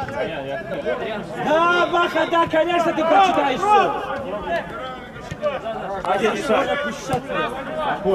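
A football is kicked across an outdoor pitch with dull thuds.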